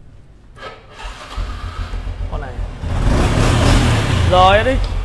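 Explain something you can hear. A motorbike engine idles close by with a low, steady rumble.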